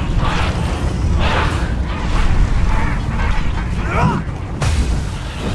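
A heavy blade swings and strikes with a whoosh.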